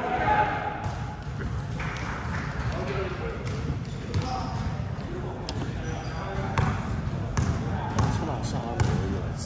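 Basketballs bounce on a hard floor, echoing in a large hall.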